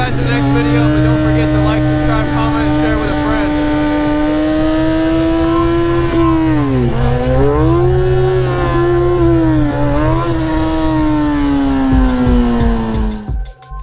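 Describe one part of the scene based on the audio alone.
A motorcycle engine hums steadily, dipping and rising in pitch as the rider shifts speed.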